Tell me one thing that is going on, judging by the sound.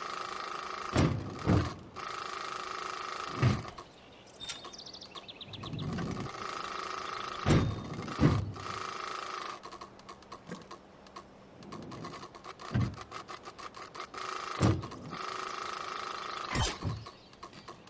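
A BMX bike's tyres thud as the bike lands.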